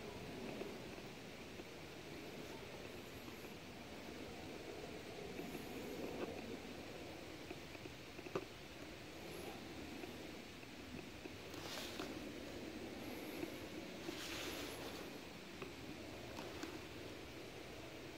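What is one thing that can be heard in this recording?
Tyres roll over rough asphalt.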